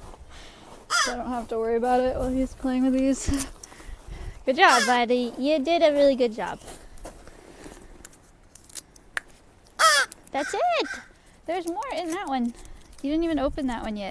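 A woman talks softly and playfully nearby.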